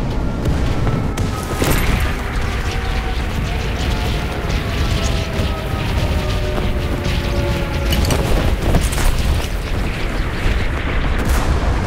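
Wind rushes loudly during a fall through the air.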